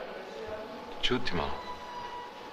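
A man speaks briefly in a quiet voice close by.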